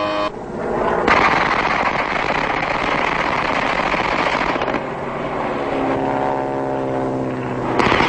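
An aircraft engine roars loudly.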